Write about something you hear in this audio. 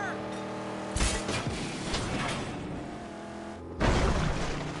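A car crashes with a loud metallic bang.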